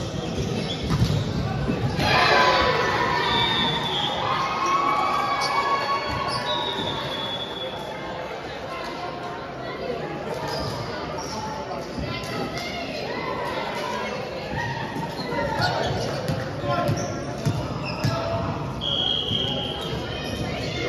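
Voices of a crowd of players chatter and call out in a large echoing hall.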